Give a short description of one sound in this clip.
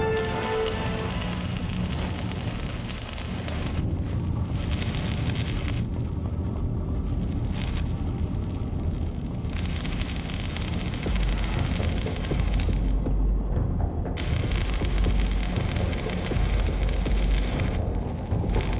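Gunshots crack repeatedly nearby.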